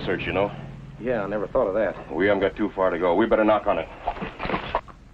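A second man answers quietly.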